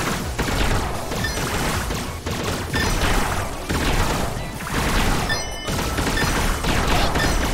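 Video game music plays with a steady beat.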